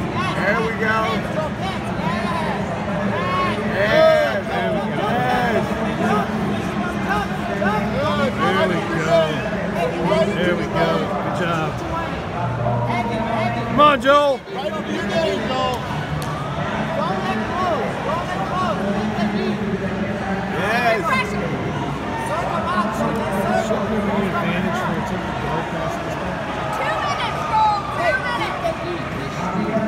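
Many voices of men and women chatter and shout across a large echoing hall.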